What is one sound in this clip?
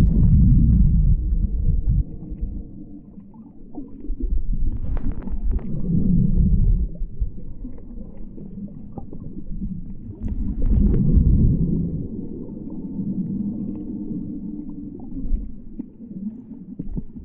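Water surges and rumbles in low, muffled swells, heard from underwater.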